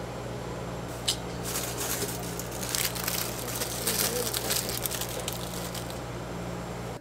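A plastic snack wrapper crinkles.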